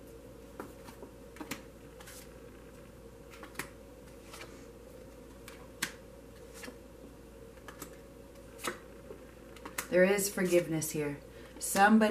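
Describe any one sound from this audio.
Cards are laid down softly on a cloth, one after another.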